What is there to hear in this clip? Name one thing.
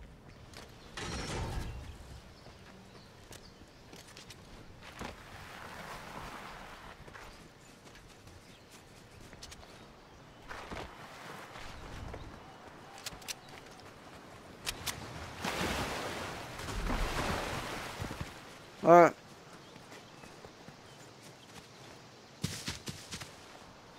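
Footsteps patter quickly over grass and rock.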